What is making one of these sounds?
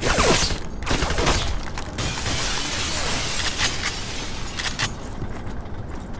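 A shotgun fires loud booming shots.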